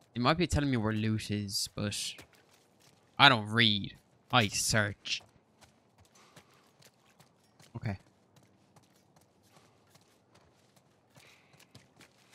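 Footsteps scuff softly on a gritty floor.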